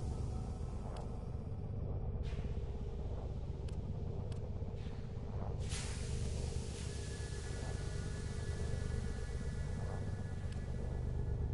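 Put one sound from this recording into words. Soft menu clicks and whooshes sound now and then.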